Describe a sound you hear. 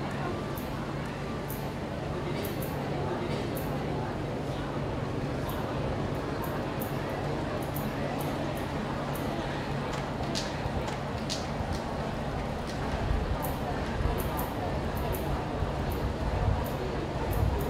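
A small crowd murmurs steadily outdoors.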